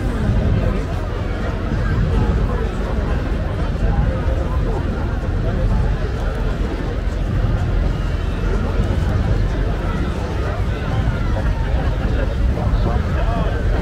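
A large crowd of men and women chatters and calls out loudly outdoors.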